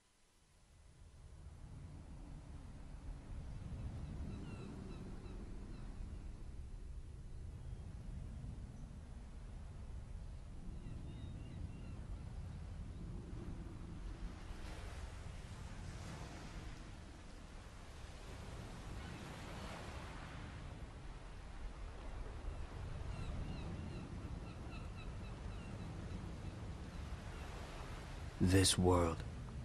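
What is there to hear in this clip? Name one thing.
Waves wash gently onto a shore.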